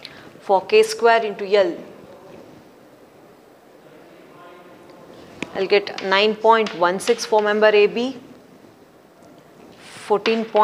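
A woman lectures calmly through a microphone.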